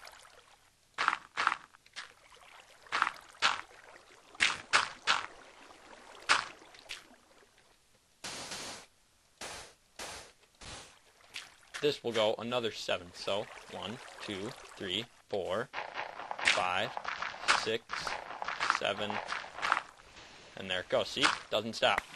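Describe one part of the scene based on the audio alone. Game blocks crunch as they are placed and broken.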